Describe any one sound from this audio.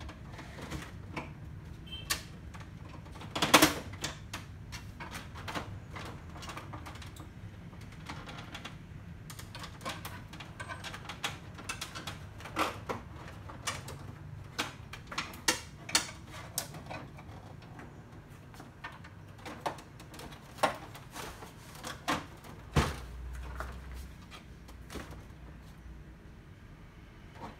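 Plastic panels rattle and knock as they are handled.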